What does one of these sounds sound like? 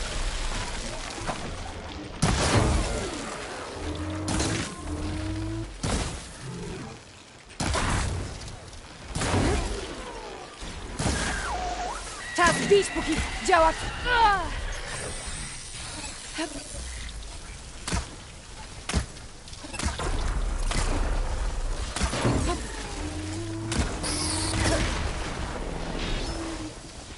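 Arrows are shot from a bow again and again.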